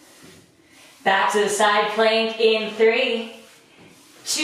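A woman speaks clearly and with energy, close to a microphone.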